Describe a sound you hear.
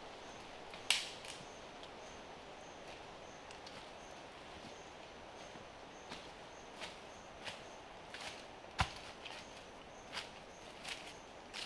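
Footsteps rustle through dry leaves.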